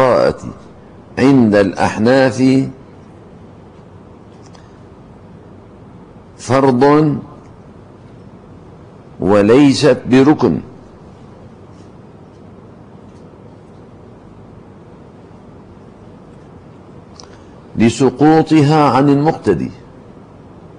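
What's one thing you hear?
An elderly man speaks slowly and calmly into a microphone, in short phrases with long pauses.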